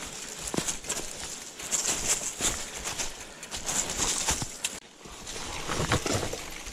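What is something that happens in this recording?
Dry leaves and twigs crunch under bicycle tyres.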